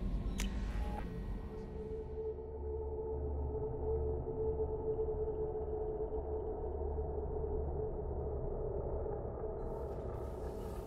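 A low, steady mechanical hum drones as an elevator moves.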